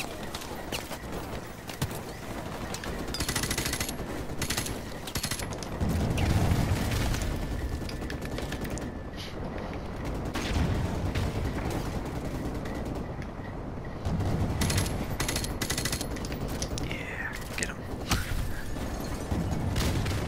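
Rifle shots fire in rapid bursts nearby.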